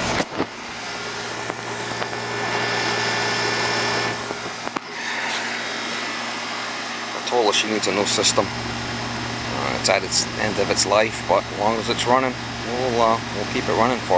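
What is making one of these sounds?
An air conditioner unit hums steadily outdoors, its fan whirring.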